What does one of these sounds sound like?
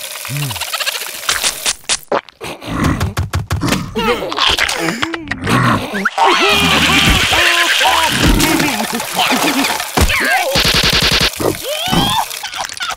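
Small cartoon creatures babble and squeal in high, silly voices.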